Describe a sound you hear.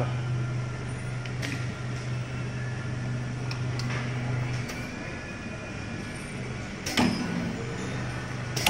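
A machine motor hums steadily.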